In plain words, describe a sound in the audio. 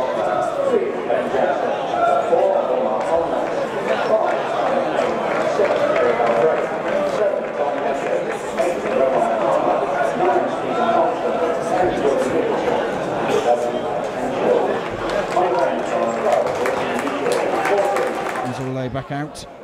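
A large crowd cheers and sings loudly outdoors.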